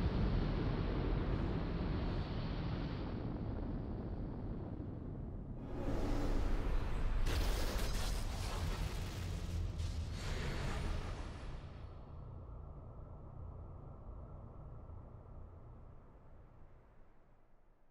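A rocket engine roars loudly and slowly fades into the distance.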